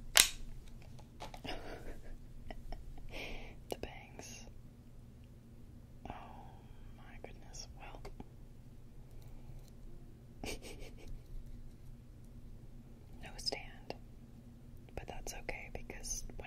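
A young woman whispers softly and close to a microphone.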